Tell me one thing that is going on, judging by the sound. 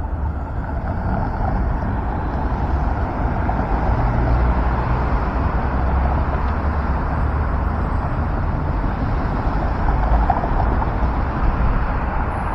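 Traffic rumbles steadily along a nearby city street.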